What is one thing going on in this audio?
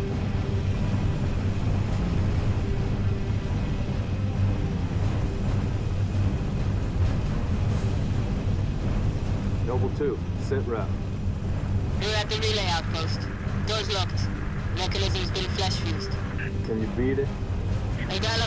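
A heavy aircraft engine rumbles steadily and low throughout.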